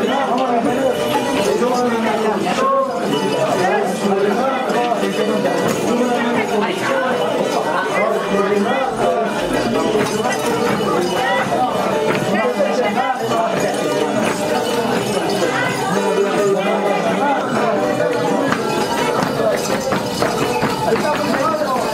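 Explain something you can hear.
A small stringed instrument is strummed quickly.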